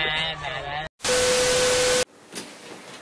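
A steady beep sounds over loud static.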